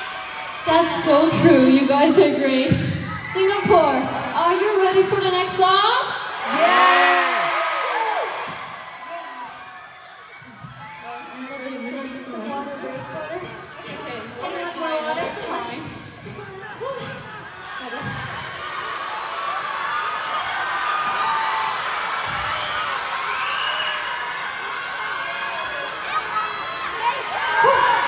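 A crowd cheers and screams in a large hall.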